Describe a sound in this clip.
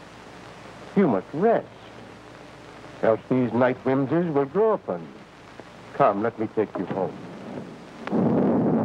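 A man speaks calmly, close by.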